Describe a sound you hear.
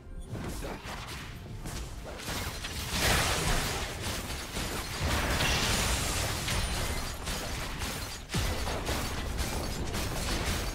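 Game characters' weapons clash and strike.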